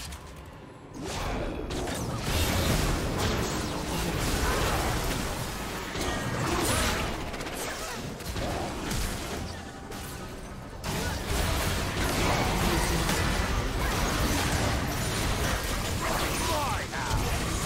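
Game spell effects crackle, whoosh and clash in a busy fight.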